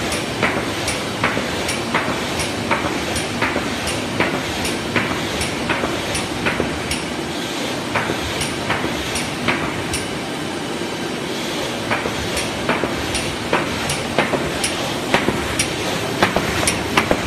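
A machine clacks sharply in a quick regular rhythm.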